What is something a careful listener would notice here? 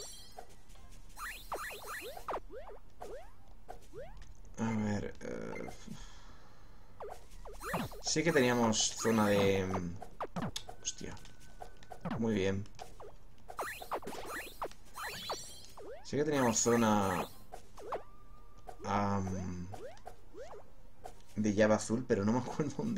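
Short rising electronic chirps sound as a game character jumps.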